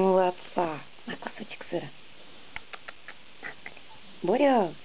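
A small dog chews on a treat with soft clicking sounds.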